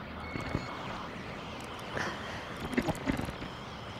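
Knobs on a radio click as they turn.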